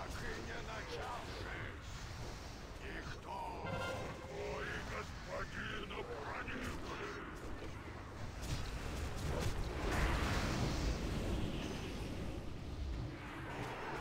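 Fantasy game combat sounds clash with spell effects.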